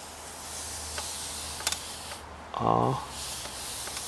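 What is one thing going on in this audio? A small wooden pointer slides softly across a board.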